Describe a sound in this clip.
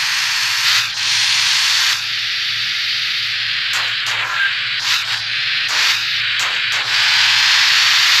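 A truck engine drones steadily as it drives along a rough track.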